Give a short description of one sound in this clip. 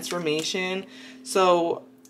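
A card is laid down softly on a table.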